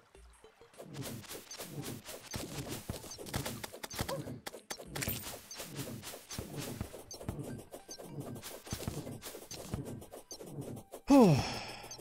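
A sword swishes again and again in quick swings.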